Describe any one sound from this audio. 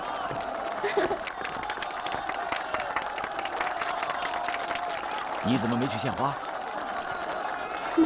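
A crowd cheers and claps loudly.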